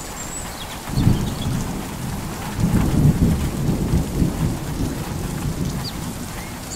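Thunder rumbles deeply in the distance.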